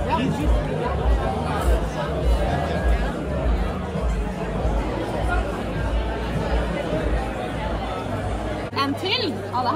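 A crowd of people chatters in a busy room.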